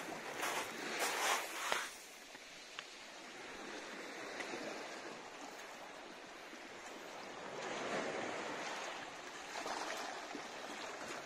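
Small waves lap gently against rocks outdoors.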